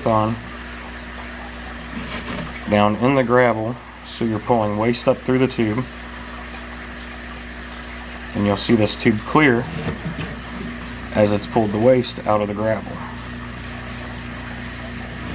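Water gurgles and gravel rattles as a siphon tube sucks through gravel.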